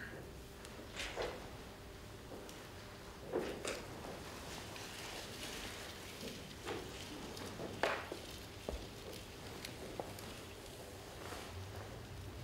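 A man claps his hands in an echoing room.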